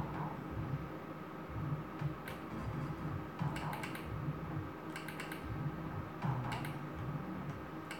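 A slot machine plays electronic jingles and beeps.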